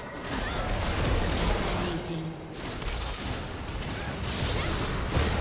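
Game spells and weapon hits clash and burst in quick succession.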